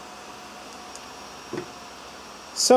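A plastic case is set down on a wooden table with a light knock.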